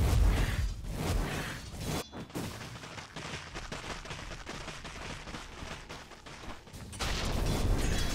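Game combat impacts clash repeatedly.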